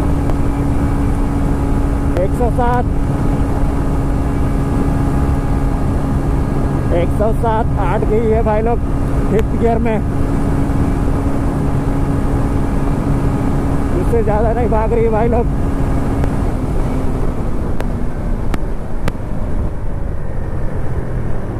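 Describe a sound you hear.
Wind rushes and buffets loudly past the rider.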